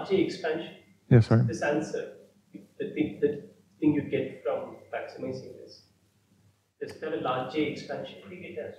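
A young man lectures calmly through a clip-on microphone.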